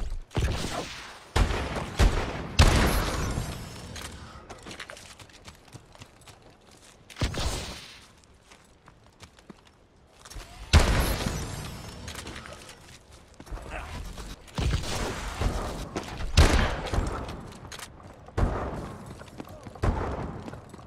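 Gunshots boom in bursts, with echoing tails.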